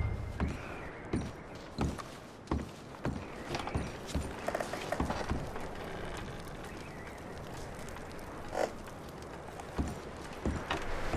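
Boots thud slowly across a wooden floor.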